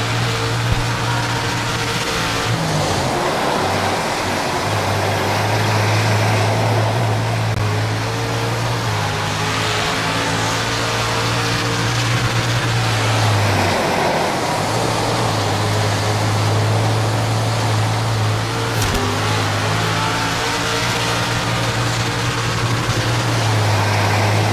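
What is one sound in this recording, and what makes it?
A race car engine roars, rising and falling as it revs through the gears.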